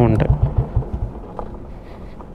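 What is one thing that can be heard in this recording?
A motorcycle engine chugs at a low idle.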